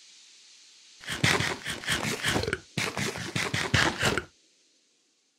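A character munches and chews food in quick bites.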